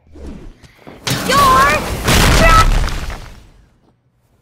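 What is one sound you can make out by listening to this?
A heavy impact bursts with a rushing whoosh.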